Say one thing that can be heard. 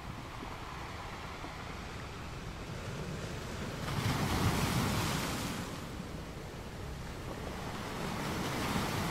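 Ocean waves break and wash over rocks with a steady roar.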